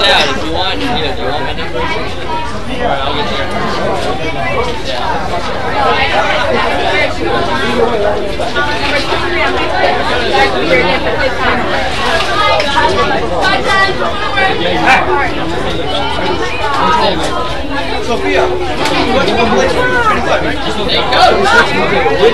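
A crowd of young people chatters nearby outdoors.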